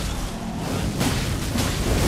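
A burst of fire roars and crackles.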